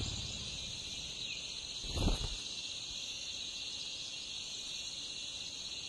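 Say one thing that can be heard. Nestlings cheep softly, begging for food.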